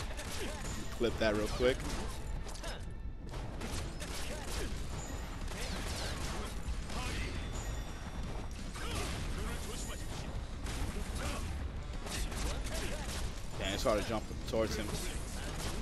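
A man exclaims close to a microphone.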